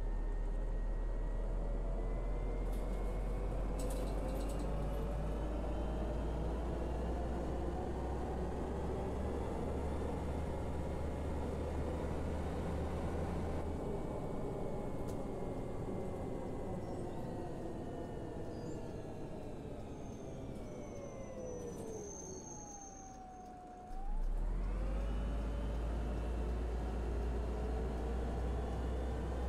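A bus engine drones steadily, its pitch slowly falling as the bus slows, then rising as it pulls away again.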